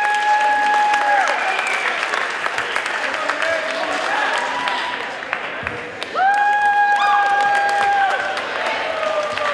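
Young women cheerleaders shout chants together.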